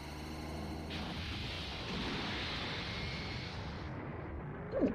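A game's energy blast whooshes and roars.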